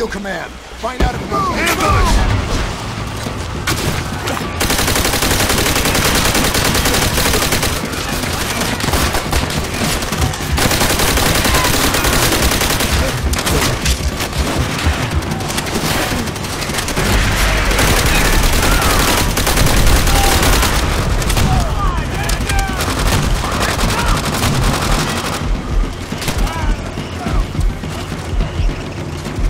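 Explosions boom in a war game.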